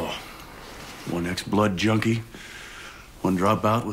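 A second young man answers in a low, even voice.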